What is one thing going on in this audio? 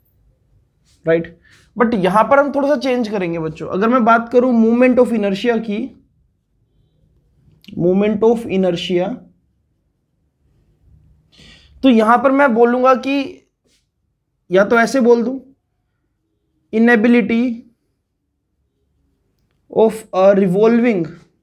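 A man speaks calmly and clearly, as if explaining a lesson, with pauses between phrases.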